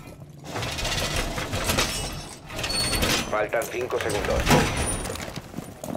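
A metal shutter rattles and clanks as it is pushed into place.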